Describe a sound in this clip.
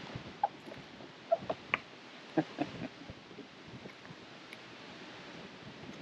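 A fish splashes and flaps.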